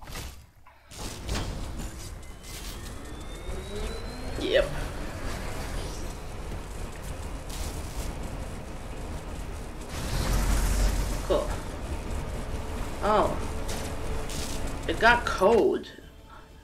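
Sci-fi machinery hums and whooshes.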